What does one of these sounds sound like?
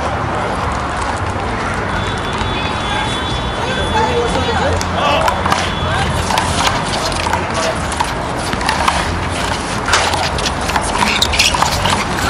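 A handball smacks against a wall.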